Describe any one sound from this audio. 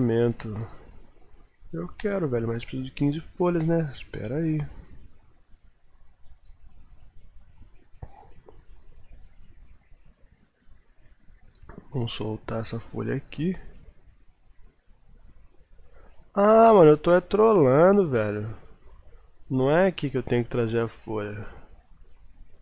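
A man talks calmly and close to a microphone, in bursts with pauses.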